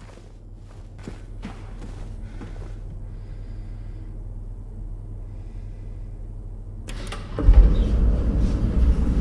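An elevator hums and rumbles as it moves.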